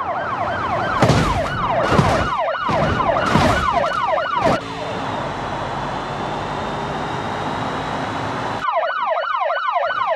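A police siren wails, rising and falling quickly.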